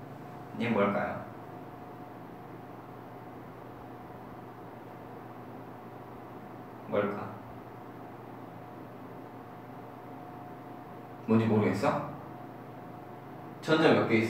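A young man speaks calmly in short bursts, close by.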